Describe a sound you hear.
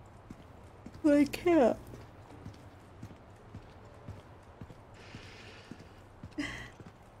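A young woman exclaims loudly with animation, close to a microphone.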